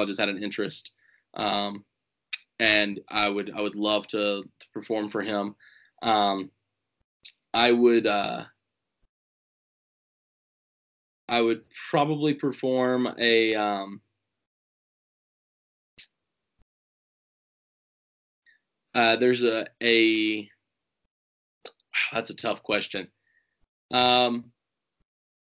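A young man speaks with animation over an online call, in bursts with pauses.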